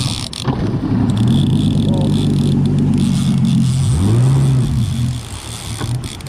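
A boat's outboard engine roars as it speeds up.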